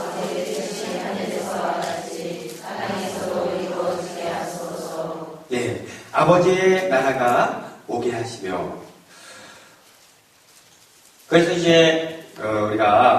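A man speaks steadily into a microphone, heard through a loudspeaker in an echoing hall.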